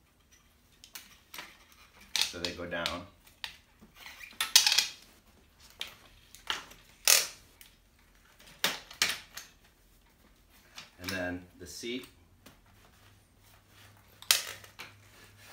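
Metal parts of a bicycle click and clank as it is folded.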